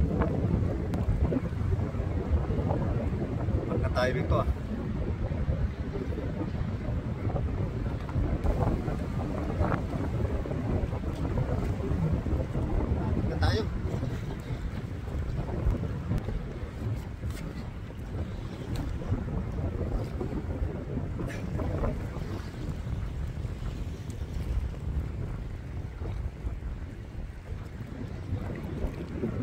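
Choppy water laps against a small boat.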